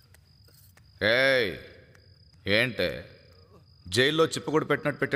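A man speaks with annoyance.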